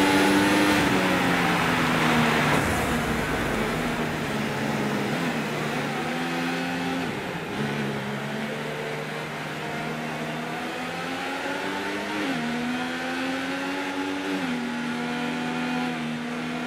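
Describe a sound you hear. A racing car engine whines loudly, its pitch rising and falling as it shifts gears.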